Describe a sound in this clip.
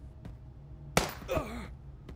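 A single gunshot cracks.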